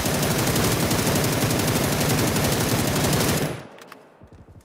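An automatic rifle fires rapidly and loudly.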